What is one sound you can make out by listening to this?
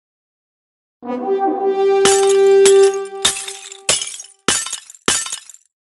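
A burst of celebratory game jingles and sparkly effects plays.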